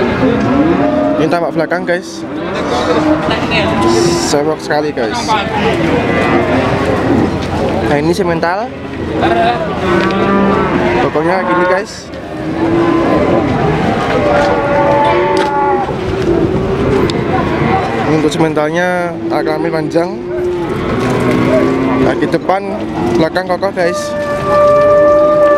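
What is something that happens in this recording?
A crowd of men talks and calls out nearby outdoors.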